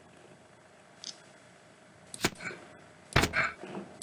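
Game interface clicks sound as items are picked up and moved.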